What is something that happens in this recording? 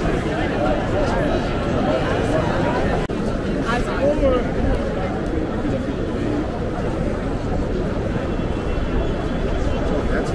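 Footsteps scuff on stone paving nearby.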